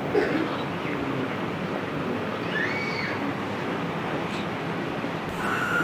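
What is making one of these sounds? An elderly man speaks with feeling into a microphone, heard through a loudspeaker in an echoing hall.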